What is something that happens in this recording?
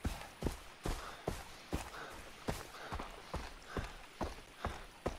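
Footsteps crunch quickly and steadily on a rocky dirt path.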